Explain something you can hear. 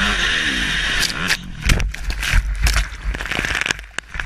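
Water splashes and crashes hard against a watercraft.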